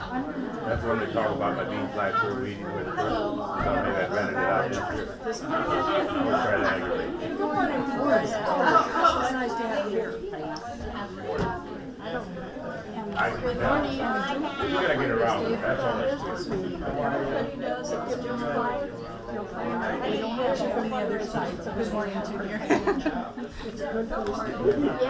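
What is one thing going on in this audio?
Many elderly men and women chat at once, close by.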